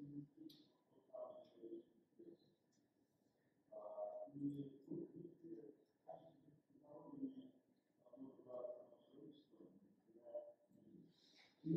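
A young woman speaks calmly into a microphone in a large room.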